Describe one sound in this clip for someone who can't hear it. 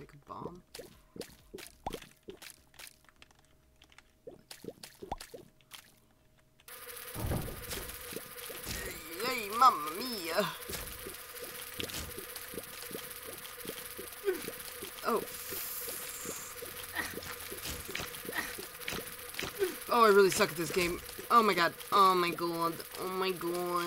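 Small watery shots pop and splash in quick succession.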